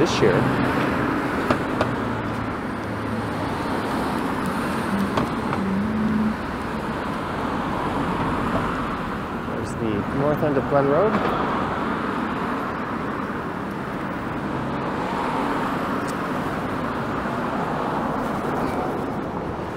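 Traffic rumbles steadily past on a nearby road.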